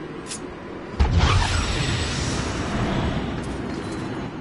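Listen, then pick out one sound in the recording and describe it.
A magical portal activates with a loud rushing whoosh.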